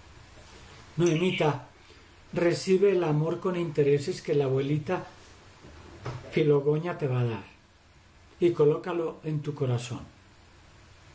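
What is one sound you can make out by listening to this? An elderly man speaks calmly and slowly through an online call.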